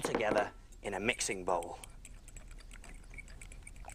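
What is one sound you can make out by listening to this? A fork whisks in a glass bowl.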